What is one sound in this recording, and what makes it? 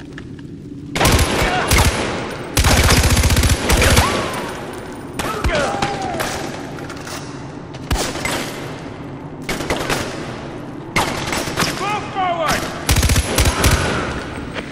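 A machine gun fires loud rapid bursts.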